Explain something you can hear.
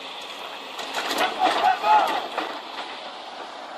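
Men shout loudly outdoors.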